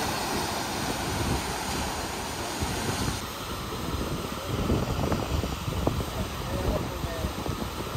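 Waves crash and surge against rocks close by.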